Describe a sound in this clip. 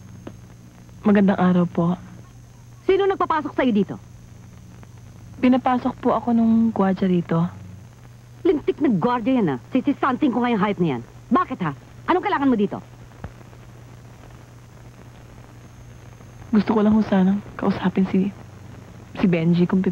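Two women talk with feeling, close by.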